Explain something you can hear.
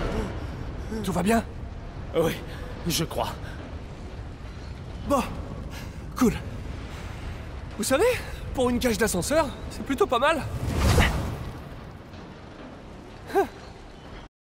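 A man strains and groans, close by.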